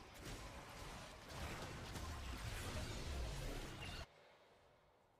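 Loud game sound effects crackle and rumble.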